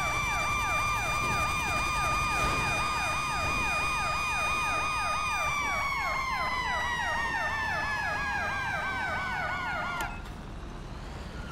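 A fire engine's engine rumbles low as it drives.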